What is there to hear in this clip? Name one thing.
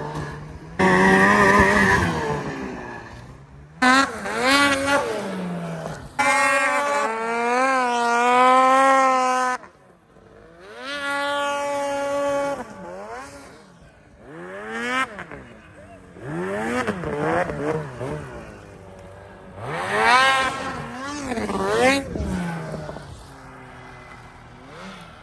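A snowmobile engine revs loudly, its whine rising and falling.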